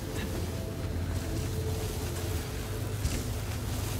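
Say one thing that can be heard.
Ice cracks and shatters underfoot.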